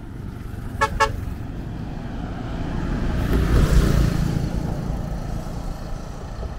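A bus passes close by on the road.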